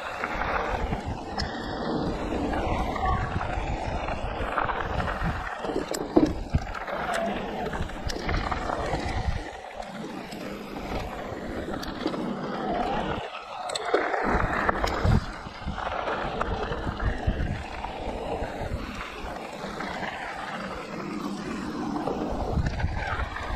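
Bike tyres crunch and rumble over a dirt trail.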